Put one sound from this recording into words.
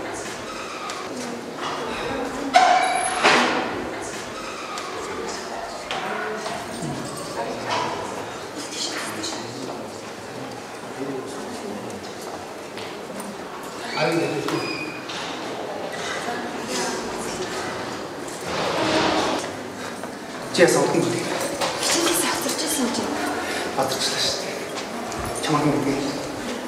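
Young people chatter with one another in a room.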